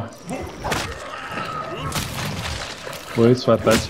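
Wet flesh squelches and splatters with heavy blows.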